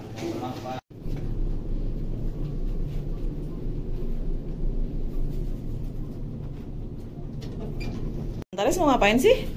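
A lift hums steadily.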